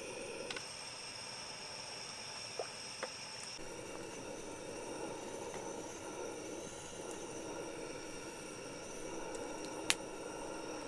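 A pot of soup bubbles and simmers over a gas burner.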